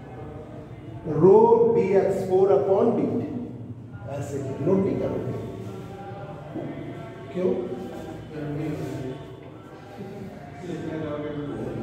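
A man speaks clearly and steadily, as if explaining.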